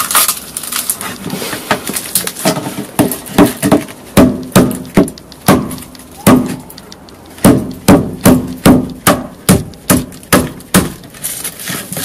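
A metal blade chops and scrapes against a phone on a wooden board.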